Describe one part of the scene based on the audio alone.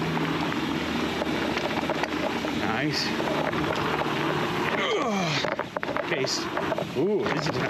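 Bicycle tyres crunch and roll over a dirt trail.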